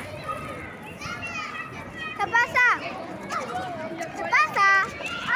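Young children talk and call out in high voices close by.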